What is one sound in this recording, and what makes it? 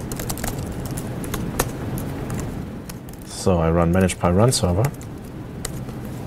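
Keys on a laptop keyboard click and tap.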